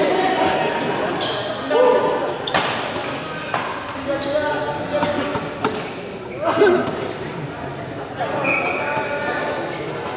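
Shoes squeak sharply on the court floor.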